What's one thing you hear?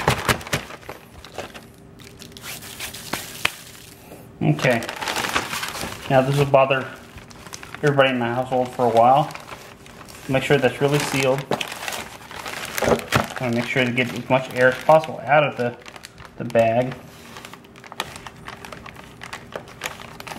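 A plastic bag crinkles and rustles as hands press and rub it.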